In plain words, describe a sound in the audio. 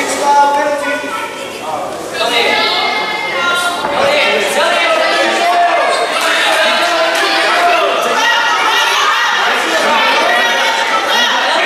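Children shout and cheer loudly in a large echoing hall.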